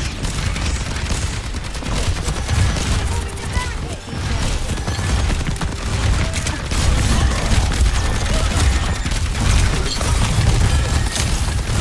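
Rapid gunfire rattles from a weapon held close.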